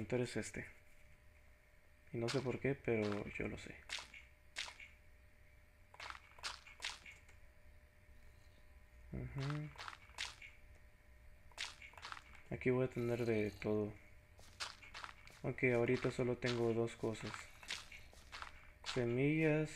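Dirt blocks are set down with soft, dull thuds.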